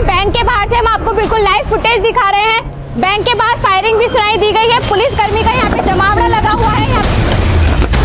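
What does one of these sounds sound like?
A young woman reports excitedly into a microphone, close by.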